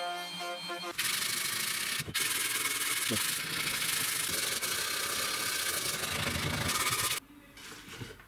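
A sanding sponge rasps steadily across wood.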